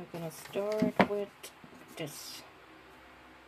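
Hands knock and clatter a small wooden piece onto a board.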